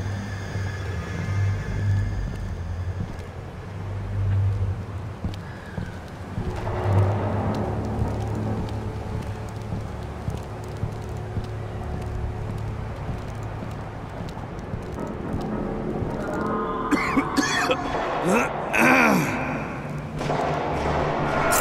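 Footsteps shuffle softly over cobblestones.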